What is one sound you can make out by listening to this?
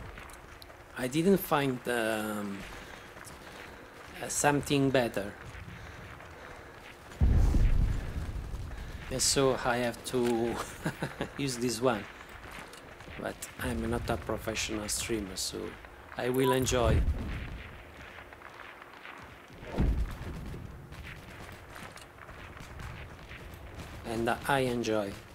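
A middle-aged man talks with animation into a close microphone, in short bursts.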